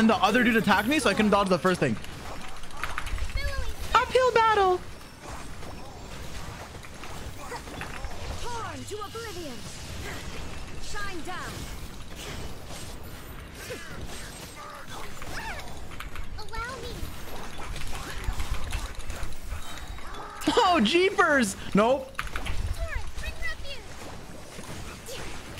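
Game effects whoosh and crash as characters fight.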